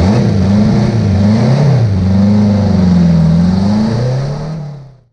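A race car engine roars loudly up close, its pitch rising and falling.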